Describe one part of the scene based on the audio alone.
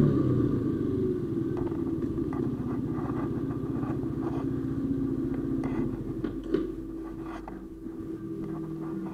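A motorcycle engine idles close by with a steady low rumble.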